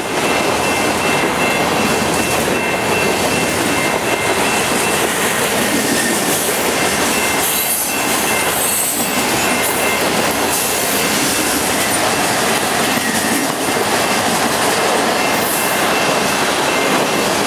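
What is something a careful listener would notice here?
Steel wheels squeal faintly on the rails.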